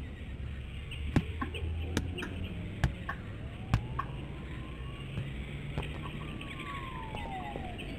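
A football thuds repeatedly as it is kicked and bounced into the air.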